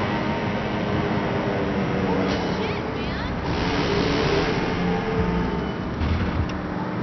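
A scooter engine hums steadily as it rides along.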